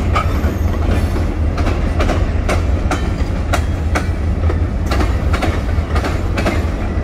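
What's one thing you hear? A diesel locomotive rumbles as it pulls a freight train past.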